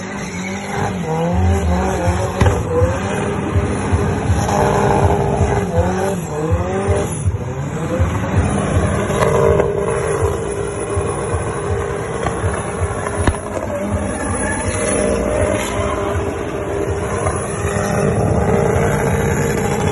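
Tyres screech and squeal on asphalt during a smoky burnout.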